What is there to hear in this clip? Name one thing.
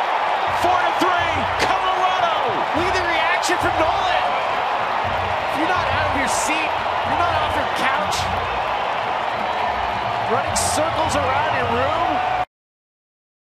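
A crowd cheers loudly in a large stadium.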